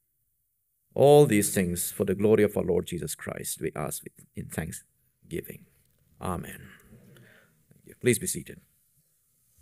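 A man speaks solemnly through a microphone.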